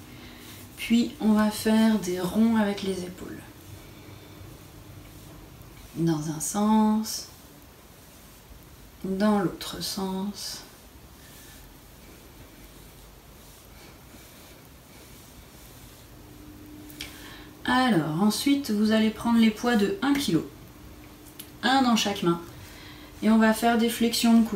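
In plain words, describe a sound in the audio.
A woman speaks calmly and clearly, close by, with pauses.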